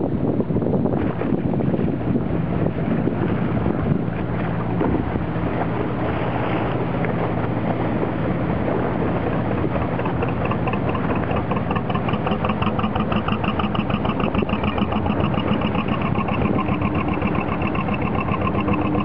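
A boat engine chugs steadily nearby.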